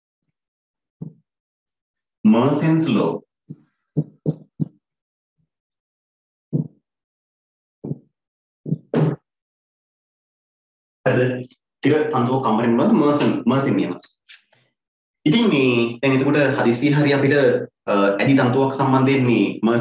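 A man explains calmly into a close microphone, with pauses between phrases.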